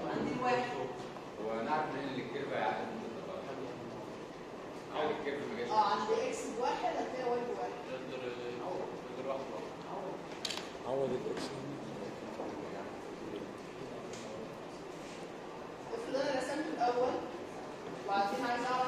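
A young woman speaks calmly, lecturing.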